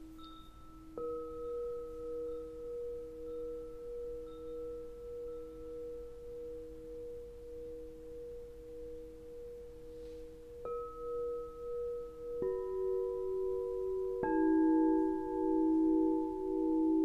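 New crystal bowls are struck, adding louder ringing tones that swell and waver.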